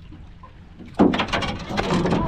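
Water splashes beside a boat.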